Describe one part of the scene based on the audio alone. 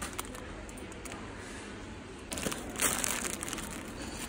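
A plastic sponge package crinkles in a hand.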